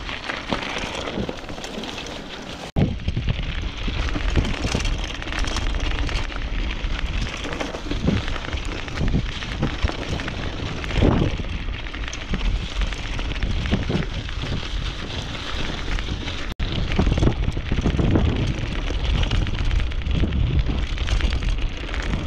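Wind rushes loudly past at speed.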